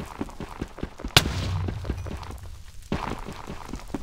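A pickaxe taps rapidly against stone.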